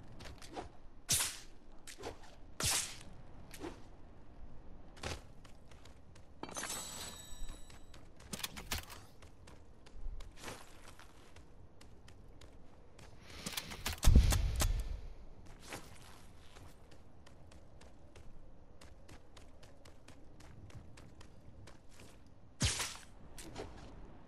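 Web lines shoot out and zip with sharp whooshes.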